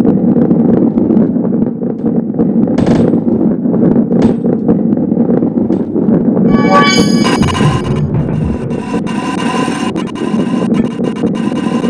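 A ball rolls along a track with a steady rumble.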